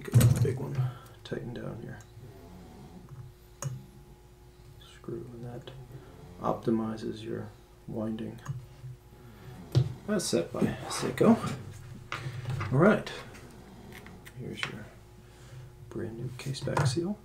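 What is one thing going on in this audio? Small metal tools click and tick softly against a watch case.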